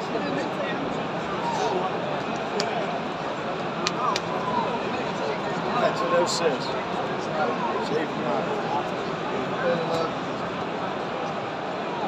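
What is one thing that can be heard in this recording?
Men nearby talk and call out among the crowd.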